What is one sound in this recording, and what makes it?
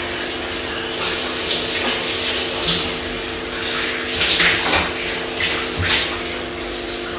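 A woman splashes water onto her face.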